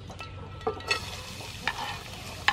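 Potato strands drop into hot oil and sizzle loudly.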